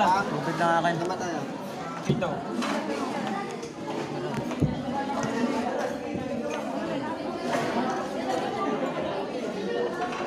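Several men talk nearby over one another.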